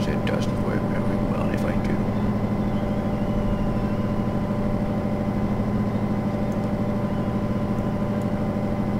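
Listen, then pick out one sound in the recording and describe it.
A diesel locomotive engine hums with a steady low drone.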